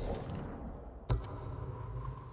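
A game menu gives a short whooshing click as the page changes.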